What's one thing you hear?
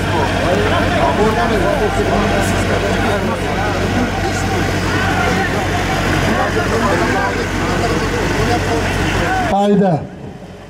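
A large crowd murmurs and shouts outdoors.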